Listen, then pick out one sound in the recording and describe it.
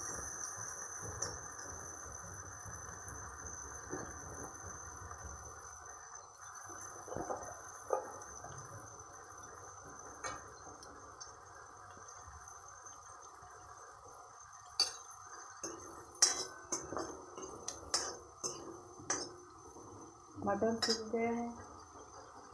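A metal spatula scrapes and taps against a metal pan.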